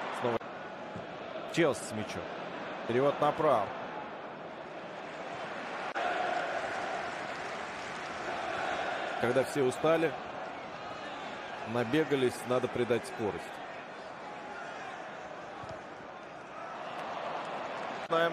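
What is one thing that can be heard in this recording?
A large crowd roars and murmurs steadily in a big open stadium.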